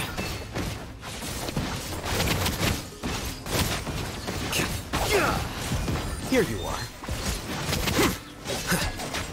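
Magic blasts and crackling impacts burst in quick succession.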